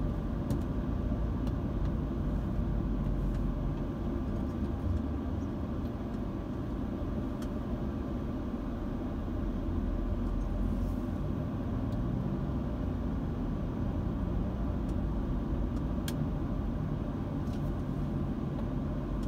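A car engine hums steadily from inside while driving slowly in traffic.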